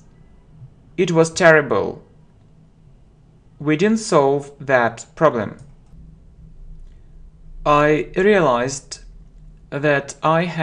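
A young man speaks slowly and clearly into a close microphone, reading out phrases with pauses.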